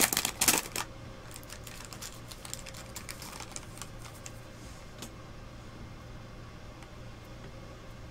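A foil wrapper crinkles as hands tear it open.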